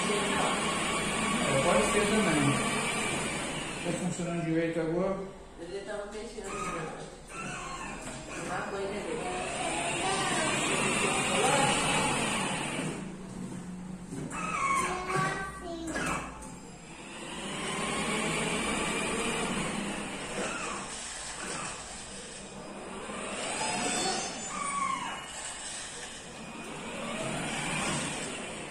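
A small electric toy car whirs as it drives across the floor.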